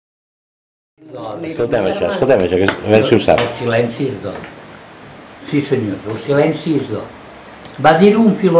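An elderly man speaks calmly and with expression, close by.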